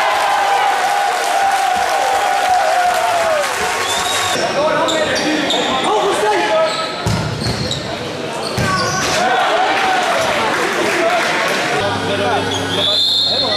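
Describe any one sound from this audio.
A crowd of spectators shouts and cheers in a large echoing hall.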